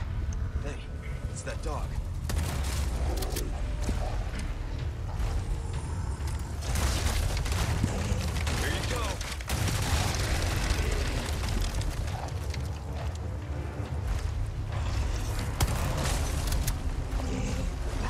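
A large creature growls and roars deeply.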